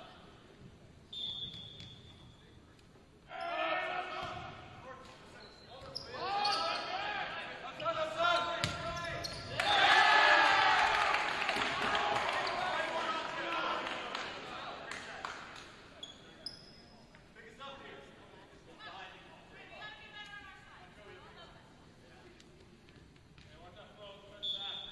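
A volleyball thumps as players hit it.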